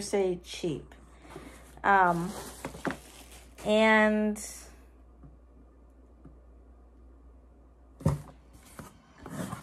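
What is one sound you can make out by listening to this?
A cardboard box rustles as it is opened.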